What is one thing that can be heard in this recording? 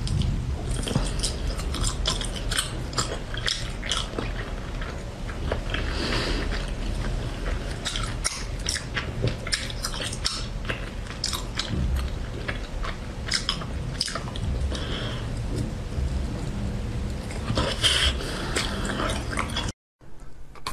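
A young woman bites into and crunches a crisp jelly-like treat close to a microphone.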